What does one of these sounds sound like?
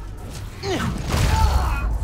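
An electric blast crackles and bursts.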